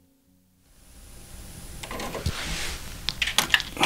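A cassette deck's door whirs and springs open.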